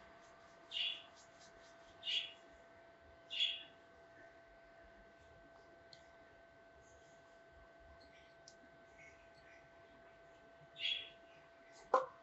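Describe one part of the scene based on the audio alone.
Fingers rustle and scratch through hair in short bursts.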